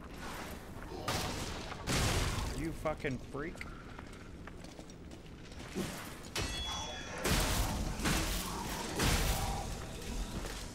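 Metal blades clash and strike in a fierce fight.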